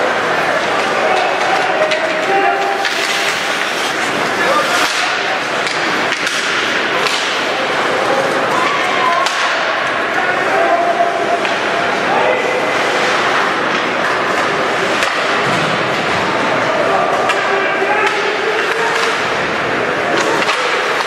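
A crowd of spectators chatters and calls out in a large echoing rink.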